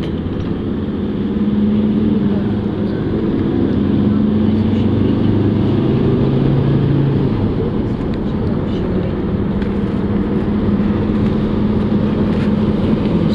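A vehicle's engine hums low and steady from inside as it drives along.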